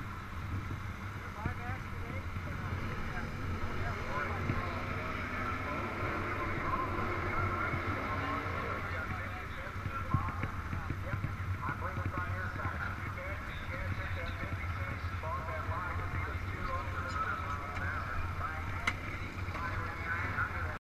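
Motorcycle engines idle and rumble nearby.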